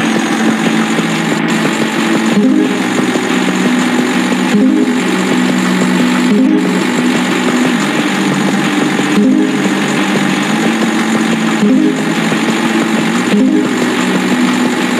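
A toy-like engine drones steadily with a buzzing tone.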